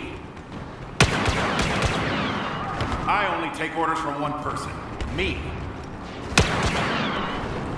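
Blaster rifles fire in sharp bursts.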